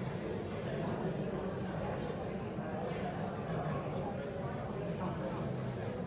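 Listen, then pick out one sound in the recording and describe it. A large crowd of men and women chatter all at once in a big hall.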